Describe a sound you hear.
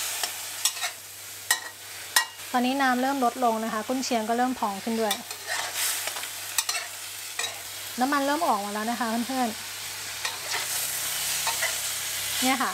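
Sausage slices sizzle in hot oil.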